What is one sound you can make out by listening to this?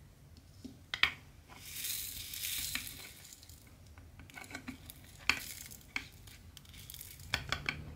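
A plastic tray rattles and scrapes against a surface.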